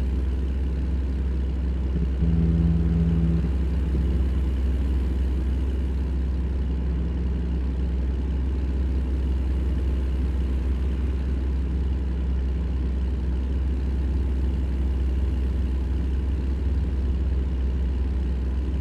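Tyres roll on the road with a steady hum.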